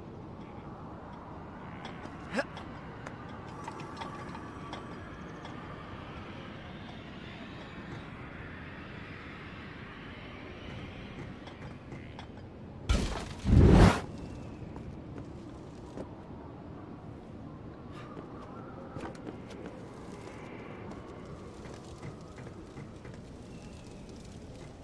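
Light footsteps tap along a wooden beam.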